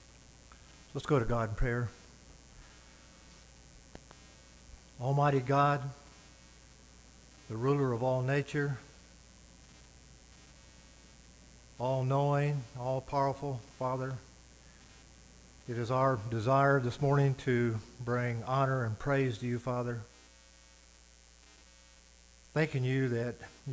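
An elderly man speaks slowly and calmly through a microphone, with pauses.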